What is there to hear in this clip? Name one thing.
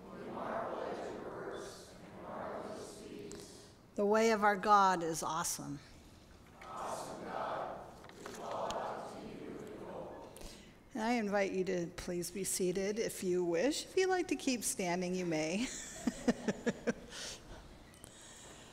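A woman reads out calmly through a microphone.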